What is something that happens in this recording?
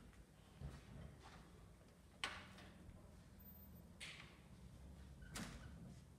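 A door opens and shuts.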